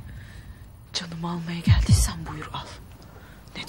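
A young woman answers in a strained voice, close by.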